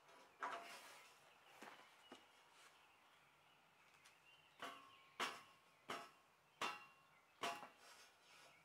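A man taps and knocks on brickwork with his hands.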